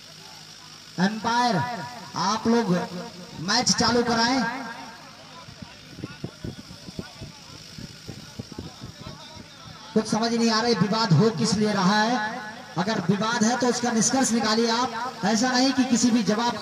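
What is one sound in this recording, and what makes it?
A man speaks loudly and excitedly close by, outdoors.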